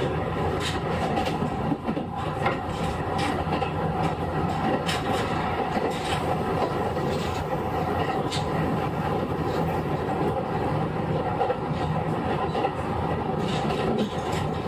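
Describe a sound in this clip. A train rumbles steadily along the tracks close by.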